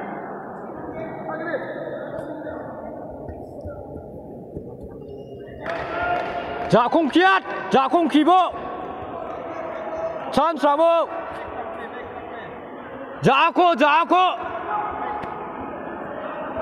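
Judo fighters shuffle and grapple on the mats.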